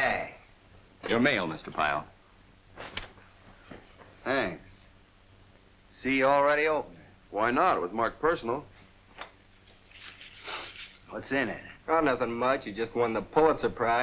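A young man speaks up in a firm voice.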